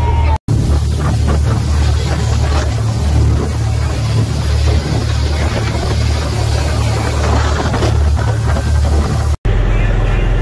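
A boat engine roars at speed.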